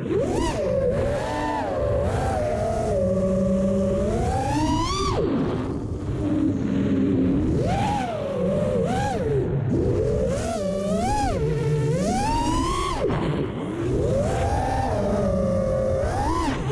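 Wind rumbles against the drone.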